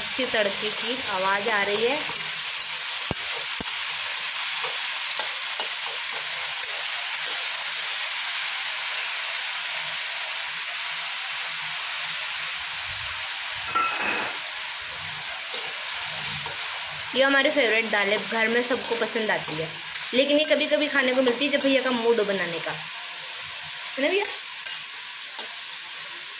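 A metal spatula scrapes and stirs in a metal pan.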